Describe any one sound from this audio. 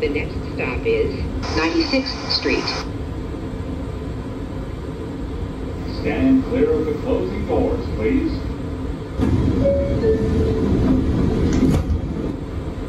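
A subway train hums and rumbles steadily, growing louder as it starts to move.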